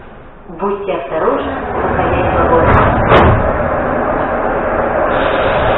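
A subway train rumbles as it pulls away and speeds up.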